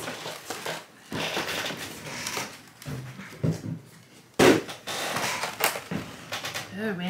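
Plastic trays clatter and rustle as they are handled.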